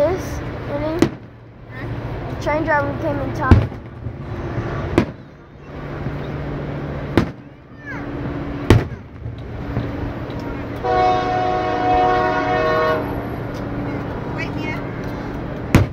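Fireworks boom and crackle in the open air.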